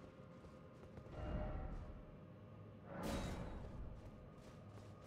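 A ghostly whoosh swells and fades.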